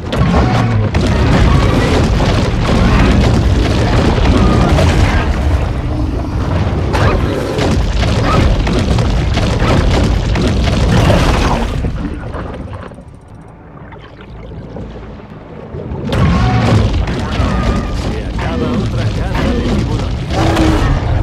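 Water churns and rumbles as a shark swims.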